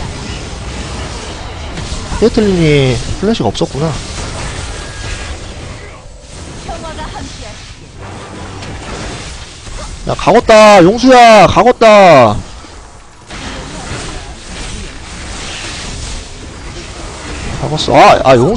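Game spell and combat sound effects clash and whoosh.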